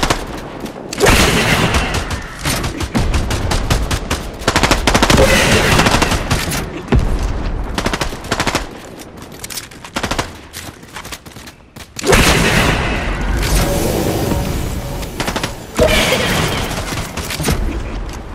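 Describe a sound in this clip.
Explosions boom loudly again and again.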